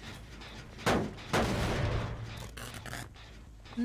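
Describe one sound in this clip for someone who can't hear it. A machine sparks and crackles loudly.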